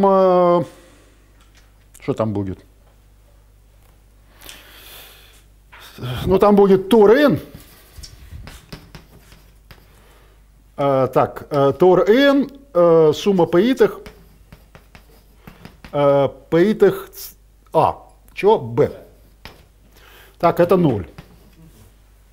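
An elderly man lectures calmly, pausing between phrases.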